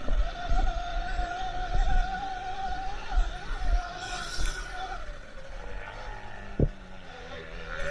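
A dirt bike engine whines steadily, rising and falling as it rides.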